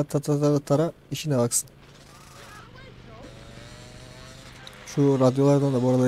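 A motorcycle engine revs and roars.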